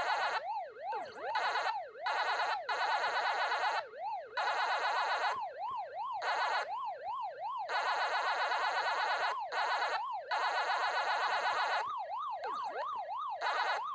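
An arcade game's character chomps with rapid, rising and falling bleeps.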